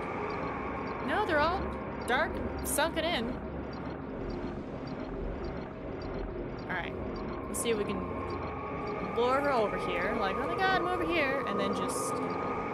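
A young woman speaks now and then into a close microphone.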